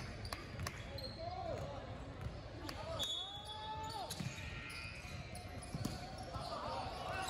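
Sneakers squeak sharply on a gym floor in a large echoing hall.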